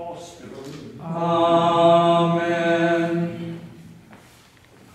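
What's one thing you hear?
Voices sing a long held phrase together in a large echoing church.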